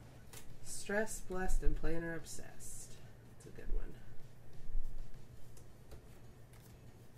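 Paper rustles under hands.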